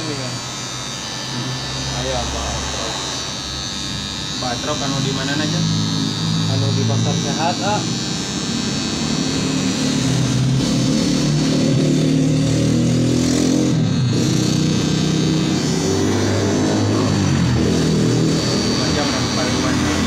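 An electric hair clipper buzzes through hair.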